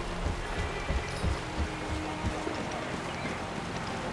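Water rushes over rocks nearby.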